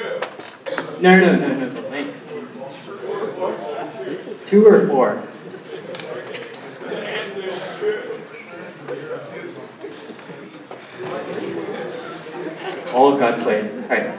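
A man lectures through a microphone in a large echoing hall.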